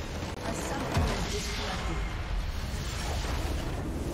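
A large structure explodes with a deep boom.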